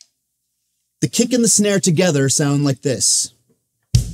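A drummer plays a drum kit with sticks.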